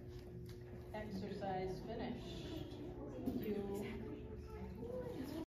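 A woman speaks calmly in a large echoing hall.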